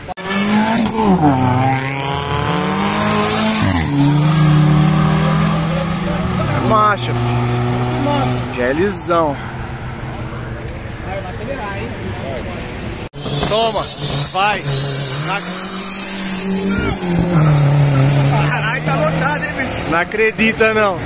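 Car engines rev loudly and roar as cars drive past close by.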